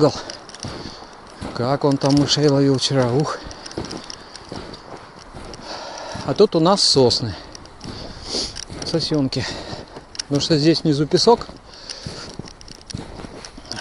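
A dog runs through deep snow, its paws crunching softly.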